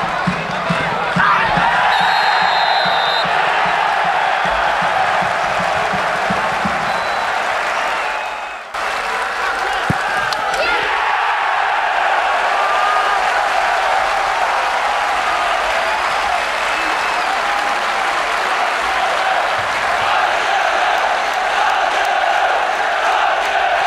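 A large crowd cheers and chants outdoors.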